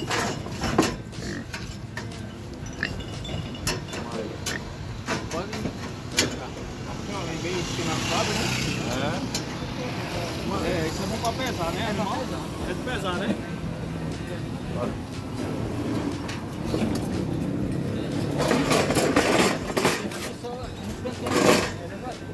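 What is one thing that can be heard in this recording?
A metal cage rattles and clanks.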